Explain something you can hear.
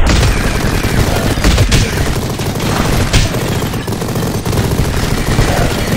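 Explosions burst loudly in a video game.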